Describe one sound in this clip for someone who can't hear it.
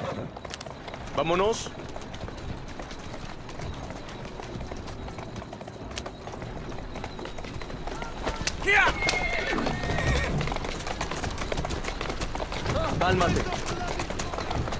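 Horse hooves clatter on cobblestones.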